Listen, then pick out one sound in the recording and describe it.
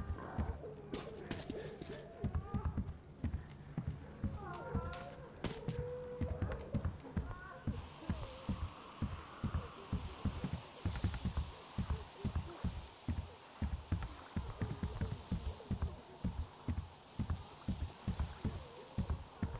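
Heavy footsteps thud steadily on wooden boards and earth.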